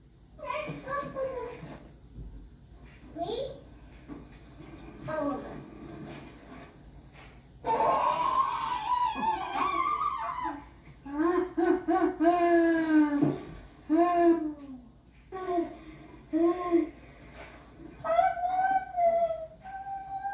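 A film's voices and sounds play through a television loudspeaker.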